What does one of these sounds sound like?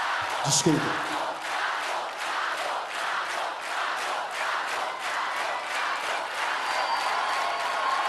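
A large crowd claps in a fast steady rhythm, then the clapping fades.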